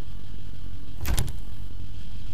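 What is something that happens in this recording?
A door swings open with a knock.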